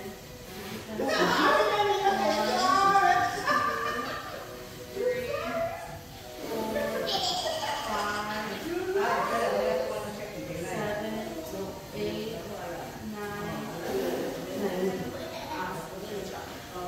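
A woman talks with energy through a television's loudspeaker.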